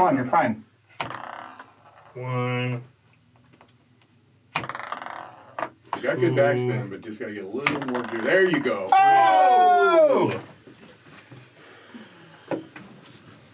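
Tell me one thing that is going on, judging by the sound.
A wooden disc clacks against a wooden board.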